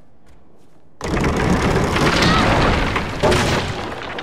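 A body slides quickly down a pole with a loud rushing scrape.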